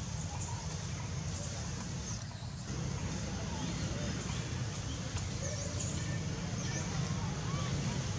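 A young monkey chews food noisily up close.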